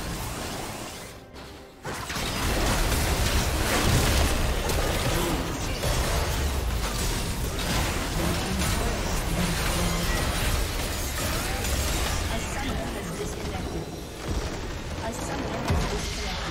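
Magic blasts and hits crackle and boom in a fast video game battle.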